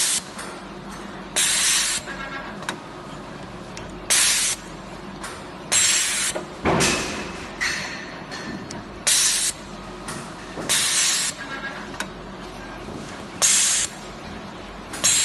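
A machine's belts and rollers whir and clatter softly.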